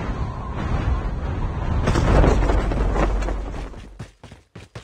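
Wind rushes loudly past a gliding body.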